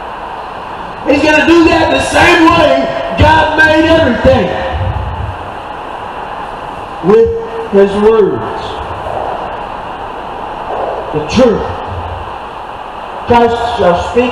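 A man speaks with animation to a crowd outdoors, heard through a loudspeaker.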